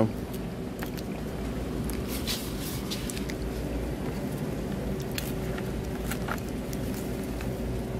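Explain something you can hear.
A plastic fork pokes and scrapes through crunchy salad in a plastic bowl.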